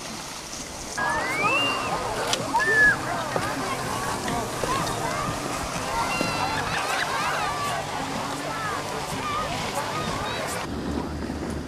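Children shout and chatter nearby outdoors.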